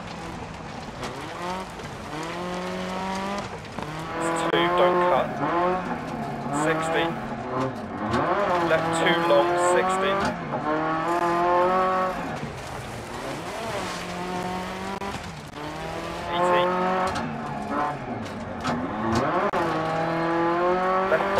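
A turbocharged four-cylinder rally car engine revs hard, rising and dropping through the gears.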